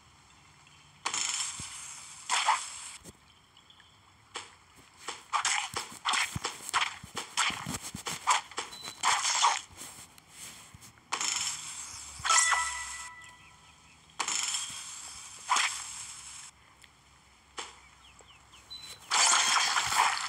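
Blades swish and fruit splatters in quick bursts.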